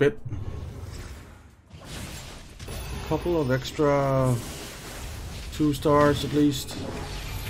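Game fighters clash with crackling spell effects.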